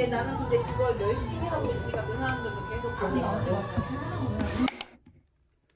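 Young women chat and laugh close by.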